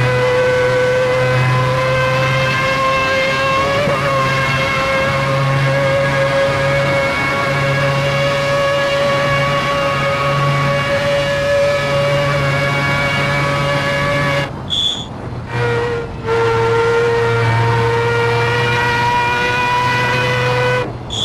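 A racing car engine whines steadily at high revs, briefly dropping off before roaring again.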